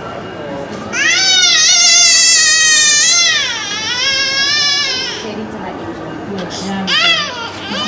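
A baby screams and wails loudly, close by.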